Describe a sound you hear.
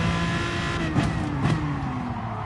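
A racing car gearbox clunks sharply through downshifts.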